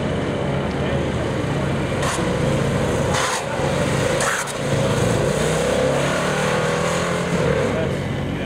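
A motorcycle engine hums steadily at a distance as the bike rides around.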